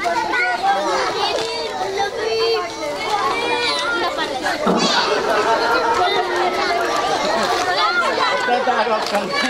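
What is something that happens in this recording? Many men and women chatter and call out all around, close by.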